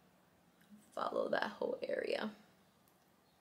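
A young woman speaks briefly and casually into a nearby microphone.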